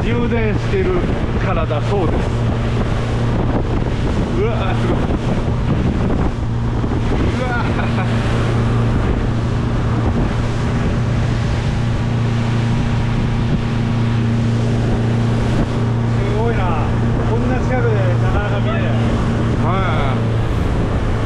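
Men talk and exclaim excitedly nearby.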